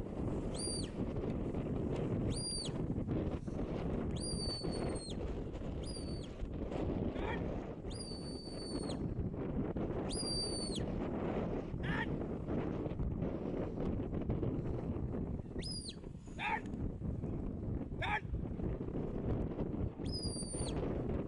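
Strong wind buffets and rumbles outdoors.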